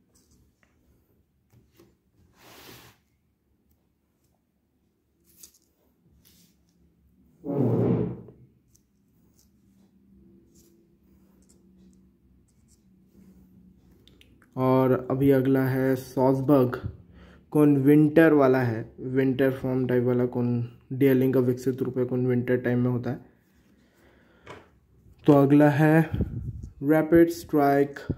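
Playing cards rustle and slide as they are handled.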